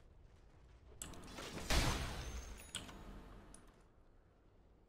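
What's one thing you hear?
Game spell effects burst and whoosh loudly during a fight.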